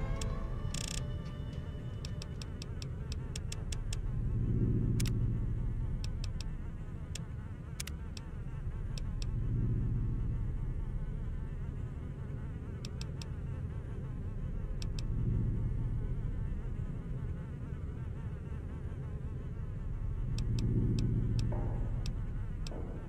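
Short menu clicks tick as a selection moves from item to item.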